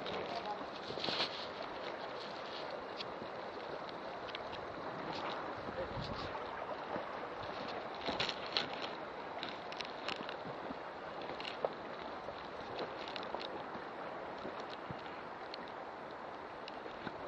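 Footsteps crunch on dry leaves and gravel.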